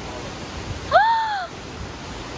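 A young man exclaims loudly nearby.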